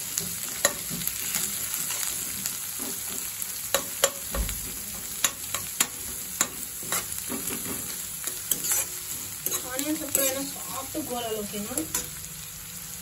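A metal spatula scrapes and taps against a frying pan.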